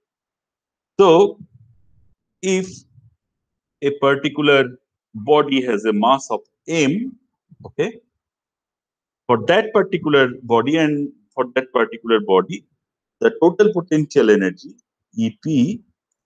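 A man lectures calmly through a microphone, with pauses between phrases.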